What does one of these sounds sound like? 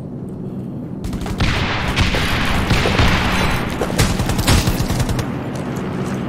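A car explodes and burns with a loud roar.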